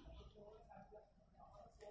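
Water splashes against a plastic bottle.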